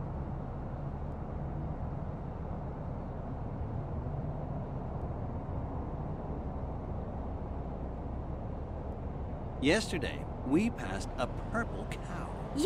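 A bus engine hums low and steady while driving.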